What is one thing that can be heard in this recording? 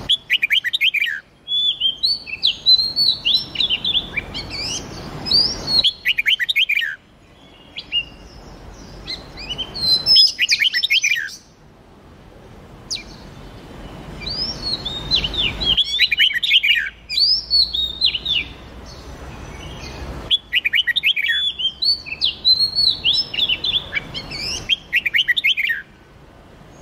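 A songbird sings close by in quick bursts of bright, rising and falling whistled notes.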